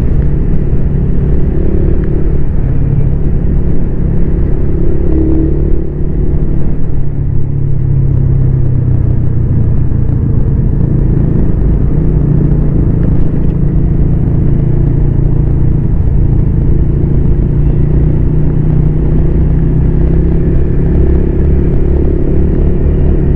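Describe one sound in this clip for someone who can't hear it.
A motorcycle engine hums steadily close by as the bike rides along.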